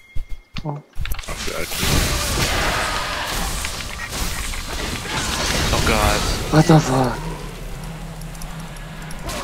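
Magical blasts and clashing hits of a video game fight crackle and whoosh.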